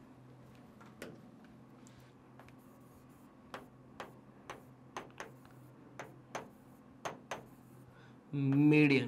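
A pen taps and clicks against a hard board.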